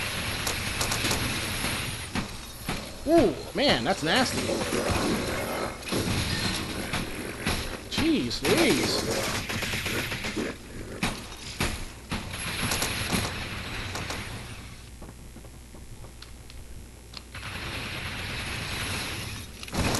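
Futuristic guns fire with sharp zapping blasts.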